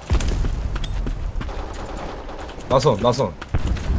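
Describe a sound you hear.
A pistol clicks as it is reloaded.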